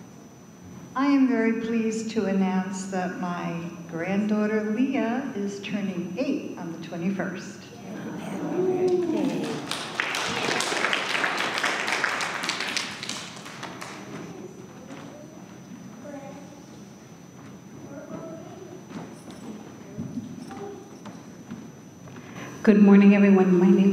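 A man speaks slowly into a microphone in a large echoing hall.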